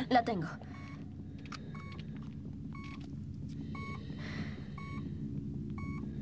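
A medical monitor beeps at a steady pace.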